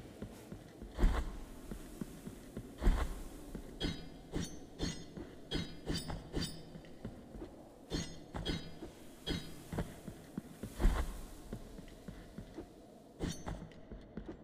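A sword swishes and strikes in quick blows.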